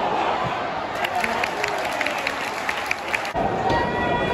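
A crowd claps in time.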